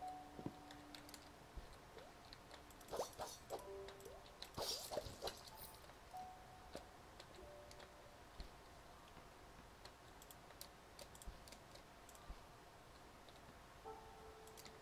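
Video game sound effects blip, chime and clatter in quick bursts.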